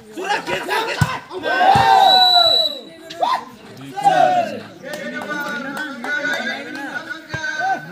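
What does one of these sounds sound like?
A volleyball is struck hard with a sharp slap.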